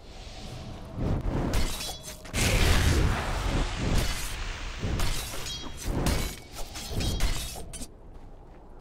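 Magic blasts and hits crackle in a fast game fight.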